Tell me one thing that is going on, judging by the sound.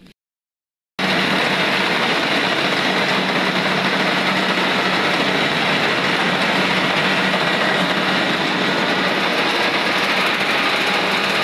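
A large harvester engine roars loudly and steadily close by.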